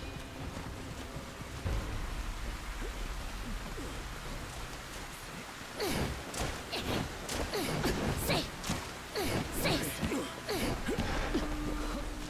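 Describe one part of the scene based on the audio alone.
Footsteps splash quickly through puddles.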